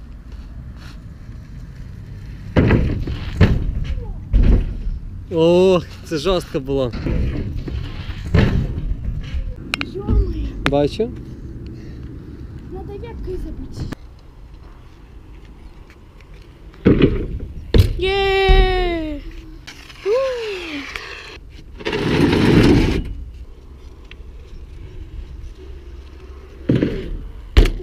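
Bike tyres roll and rattle over a wooden ramp.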